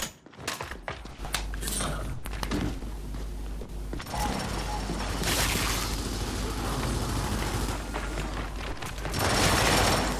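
Heavy footsteps thud on metal and stone.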